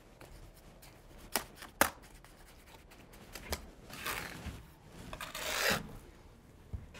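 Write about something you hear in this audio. A trowel scrapes wet plaster on a board.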